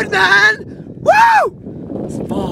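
A young man shouts out a long exclamation.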